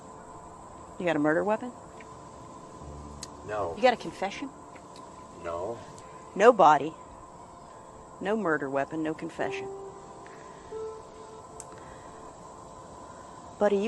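A woman speaks nearby in a worried, earnest voice.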